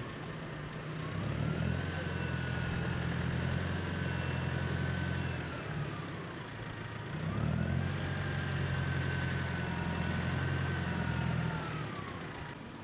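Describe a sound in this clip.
A tractor engine revs up, drones loudly and slows down, twice.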